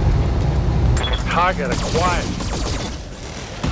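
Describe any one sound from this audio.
Laser beams fire with sharp sweeping zaps.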